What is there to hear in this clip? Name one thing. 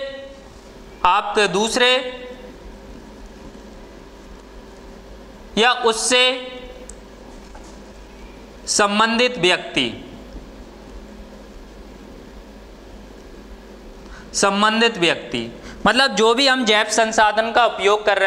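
A young man speaks calmly in short bursts, close by.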